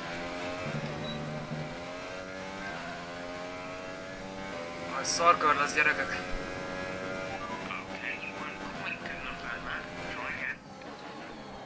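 A racing car engine whines steadily and shifts pitch as the car speeds up and slows down.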